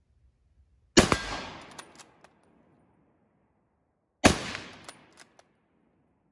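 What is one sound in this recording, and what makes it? A rifle fires loudly outdoors and echoes away.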